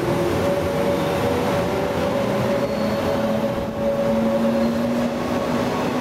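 Train wheels rumble and clatter over the rails as the train passes close by.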